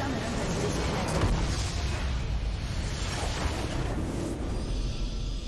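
A crystal structure explodes with a loud, rumbling blast.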